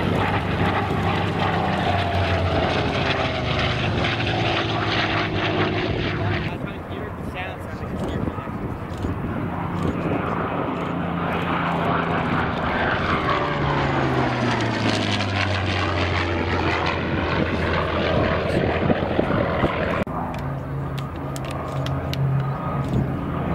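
A propeller plane's piston engine roars loudly overhead, its pitch dropping as it passes by.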